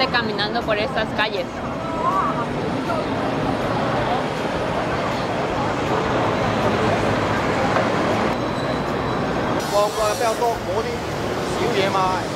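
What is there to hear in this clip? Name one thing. Crowd chatter and traffic noise fill a busy street steadily.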